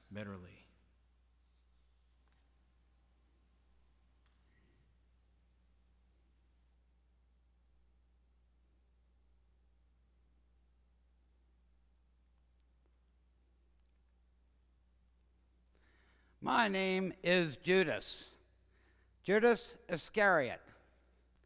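A man speaks slowly into a microphone, heard over loudspeakers in a large hall.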